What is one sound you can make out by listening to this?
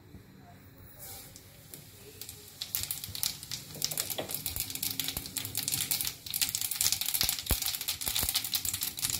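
Seeds sizzle and crackle in hot oil, growing louder.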